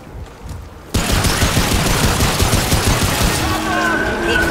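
A deep, loud rumbling roar suddenly swells up and keeps going.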